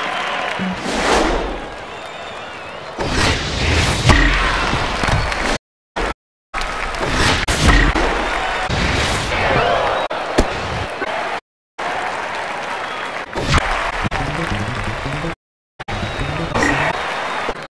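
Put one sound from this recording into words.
A crowd cheers and murmurs throughout.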